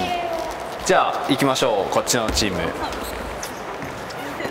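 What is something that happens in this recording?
Young women shout and cheer in an echoing gym.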